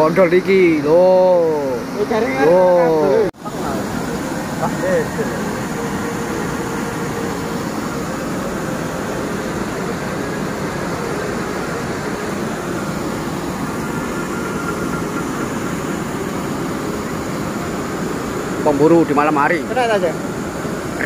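Water rushes and churns steadily nearby.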